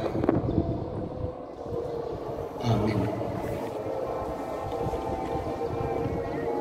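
A man speaks calmly into a microphone, heard through loudspeakers in an echoing room.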